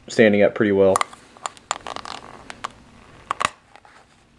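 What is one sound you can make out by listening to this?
A can opener clicks and scrapes against a metal can lid.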